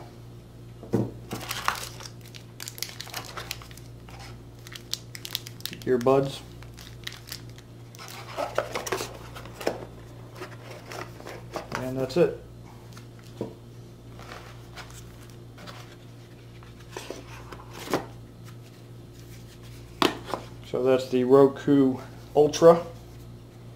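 Plastic parts click and tap against each other.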